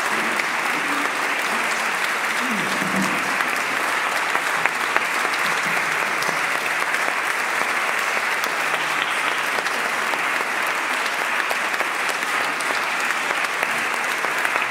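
An audience applauds loudly in an echoing hall.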